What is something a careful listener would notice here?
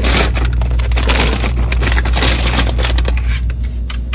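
A plastic food bag crinkles and rustles as a hand pushes it aside.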